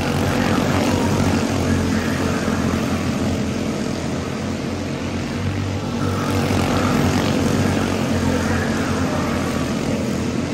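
Kart engines rev up and down as the karts pass close by.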